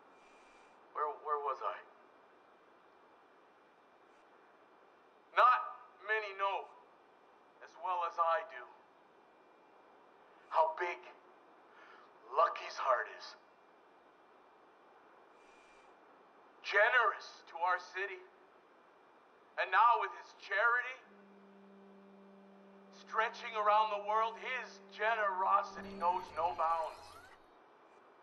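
A man speaks with animation, giving a speech in short bursts.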